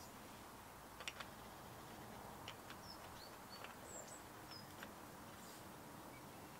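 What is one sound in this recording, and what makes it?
A metal silencer scrapes and clicks as it is screwed onto a barrel.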